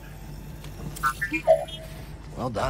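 A small robot beeps and warbles.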